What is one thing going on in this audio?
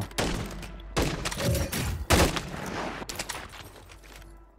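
Rapid gunshots crack nearby.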